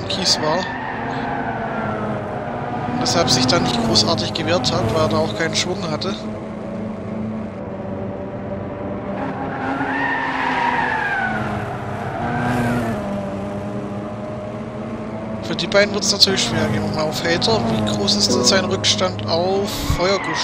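A racing car engine whines loudly, rising and falling in pitch as it revs and shifts gears.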